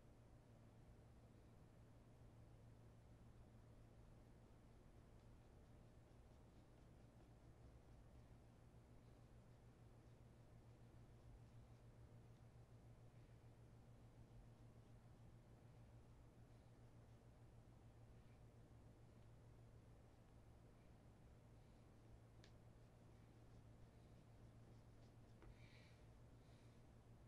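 A shoelace rustles softly as it is threaded through a leather shoe.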